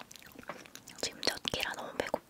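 A young woman speaks softly close to a microphone.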